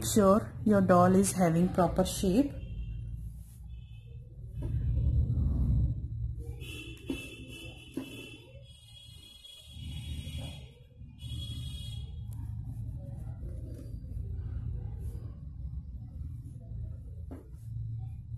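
Hands rustle and squeeze soft stuffing and knitted fabric close by.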